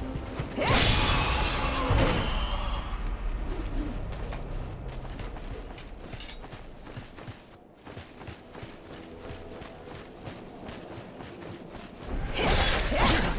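A sword slashes and clangs in combat.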